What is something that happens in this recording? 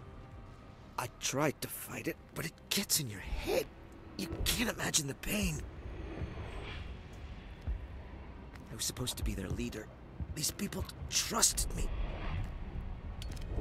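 A man speaks in a strained, pained voice.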